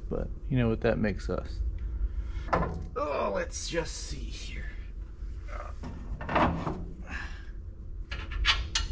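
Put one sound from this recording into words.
A young man talks calmly and close by.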